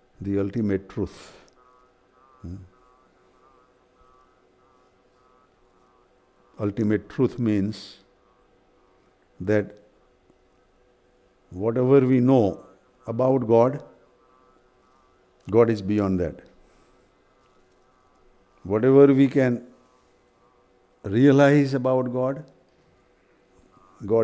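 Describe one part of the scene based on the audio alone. An elderly man speaks calmly and slowly, close by, with long pauses.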